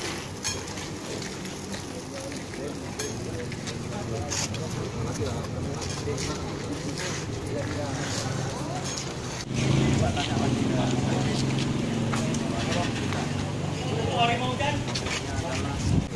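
A crowd of men murmurs and talks nearby outdoors.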